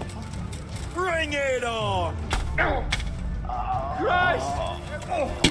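Men shout angrily as they charge.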